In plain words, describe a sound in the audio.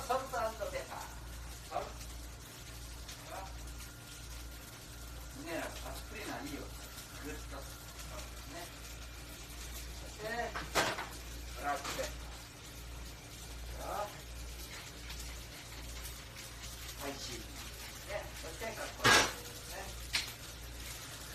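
Men and women talk in a busy room.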